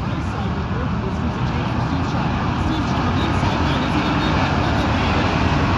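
Many race car engines roar loudly and steadily outdoors.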